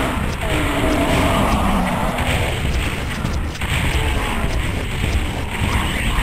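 Rockets explode with deep booms in a video game.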